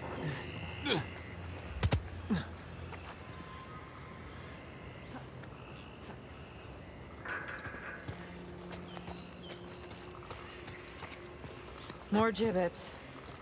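Footsteps patter on soft ground.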